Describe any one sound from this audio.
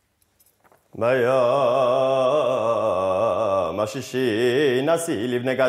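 A man chants in a loud, wavering voice.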